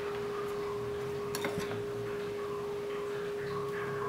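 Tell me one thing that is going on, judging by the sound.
Food pieces drop into a metal pot with a soft clatter.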